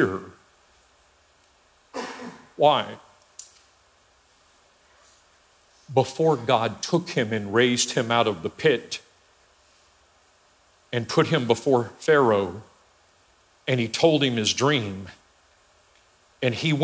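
A middle-aged man speaks with animation through a microphone in a large echoing hall, pausing often.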